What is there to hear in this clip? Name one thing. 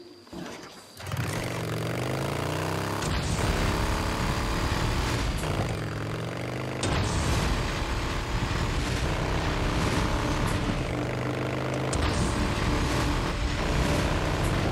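A motorcycle engine starts and revs loudly, then roars steadily along a road.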